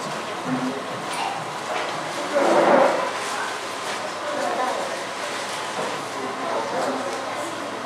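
A young woman talks through a microphone over loudspeakers.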